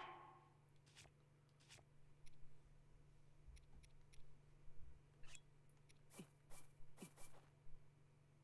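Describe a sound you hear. Short game menu clicks and chimes sound.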